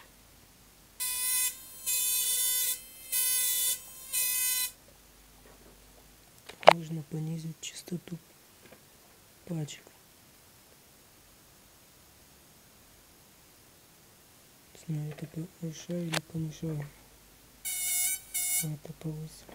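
An electronic circuit gives off a loud high buzzing in short bursts.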